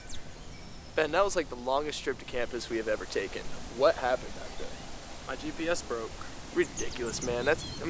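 Young men talk outdoors.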